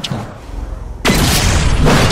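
A loud burst of energy blasts.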